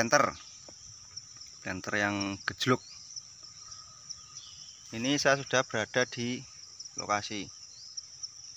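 A young man speaks close by, calmly, in short phrases with pauses.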